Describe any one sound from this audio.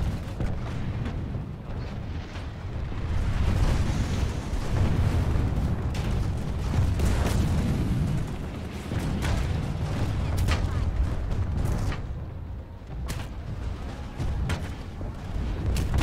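A deep mechanical rumble drones steadily throughout.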